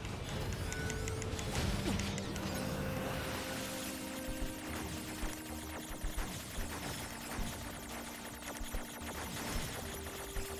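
A young woman talks into a microphone.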